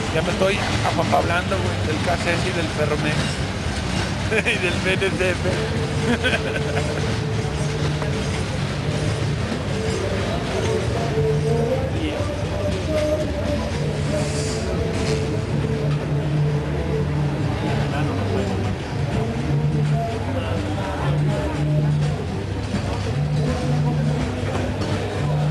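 Freight cars rumble and clatter loudly past close by on the rails.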